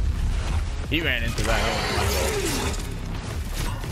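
A monster roars and growls.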